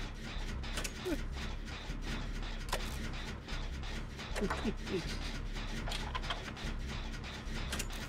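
Metal parts clank and rattle as a machine is worked on.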